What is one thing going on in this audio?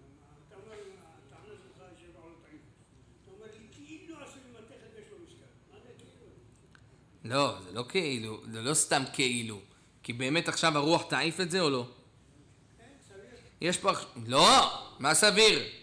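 A man speaks steadily into a microphone, at times quietly and at times loudly with animation.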